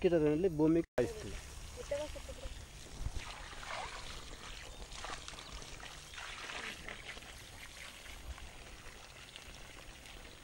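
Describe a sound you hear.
Liquid pours from a bucket and splashes onto the ground.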